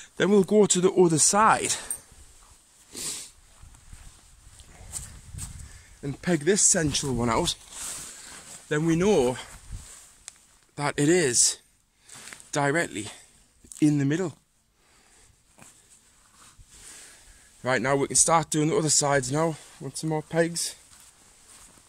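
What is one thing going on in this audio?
Tent fabric rustles and crinkles.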